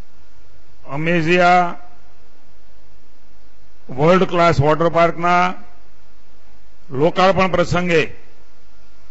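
A man speaks into a microphone over loudspeakers, in short bursts.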